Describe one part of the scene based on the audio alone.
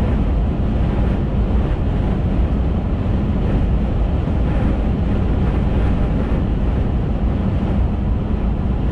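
Wind rushes past the moving car.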